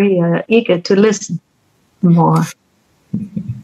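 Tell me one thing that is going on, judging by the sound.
A middle-aged woman speaks cheerfully over an online call.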